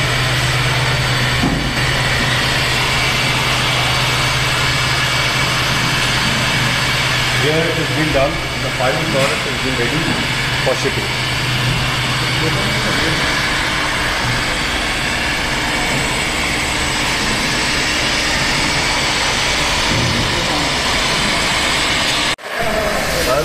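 Heat guns blow with a steady, loud whirring hum.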